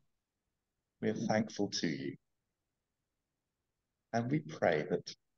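A middle-aged man speaks slowly and earnestly into a close microphone, with pauses.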